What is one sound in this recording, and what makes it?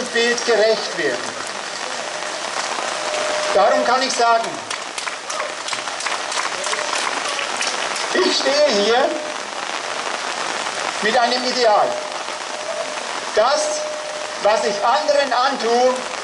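Light rain patters steadily on the ground.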